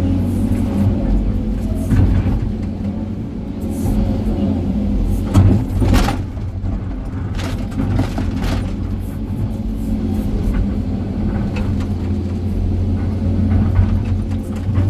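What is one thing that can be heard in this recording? A diesel excavator engine rumbles steadily from inside the cab.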